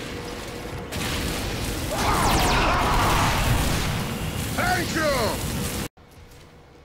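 A flamethrower roars in bursts close by.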